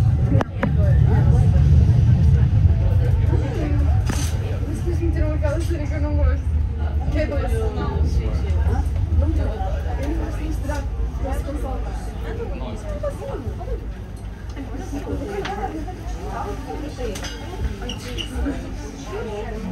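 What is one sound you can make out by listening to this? A train rumbles low and steady as it slows into a station.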